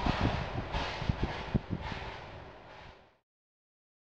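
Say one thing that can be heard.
A thin metal sheet flexes and clanks.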